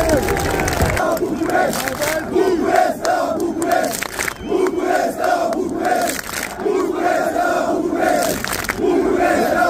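A large crowd of men chants loudly in rhythm outdoors.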